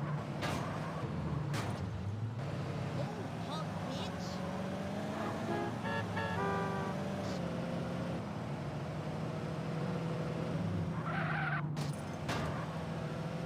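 A car scrapes and thumps against a wall.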